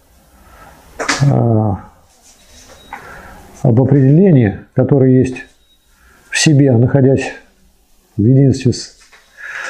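A middle-aged man speaks calmly and close by, in short phrases with pauses.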